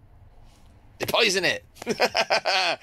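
A man laughs close up.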